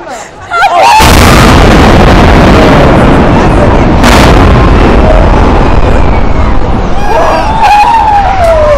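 A building collapses with a loud, deep rumbling roar.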